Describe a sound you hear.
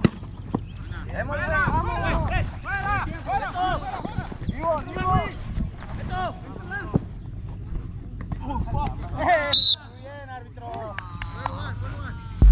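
Young men call out to each other across an open field.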